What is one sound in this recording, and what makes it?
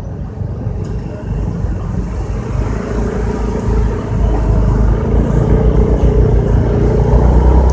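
A car engine hums steadily at low speed in slow traffic.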